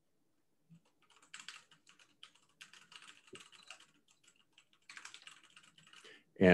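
Keyboard keys click softly.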